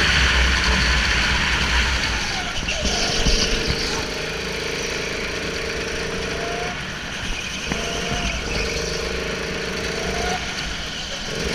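A go-kart engine buzzes loudly, rising and falling in pitch.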